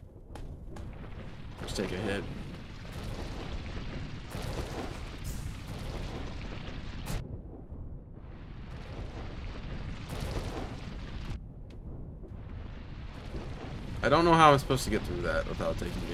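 Sword slashes and whooshing game sound effects play.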